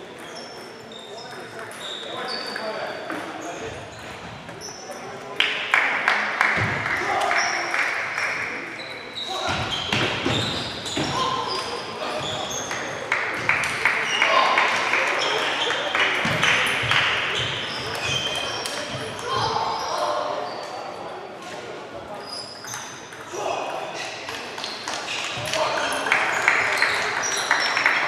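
Table tennis balls click and bounce on tables throughout a large echoing hall.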